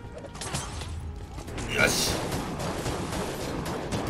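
Magic blasts crackle and boom in quick bursts.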